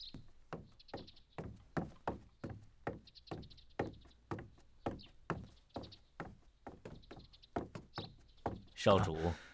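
Footsteps walk steadily across wooden boards.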